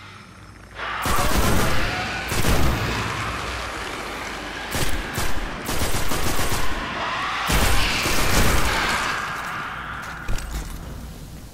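A rifle fires in rapid bursts with loud, echoing blasts.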